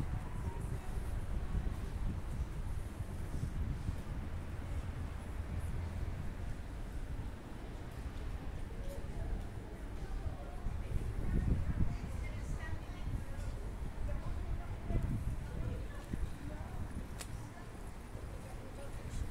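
Wind rumbles outdoors across the microphone.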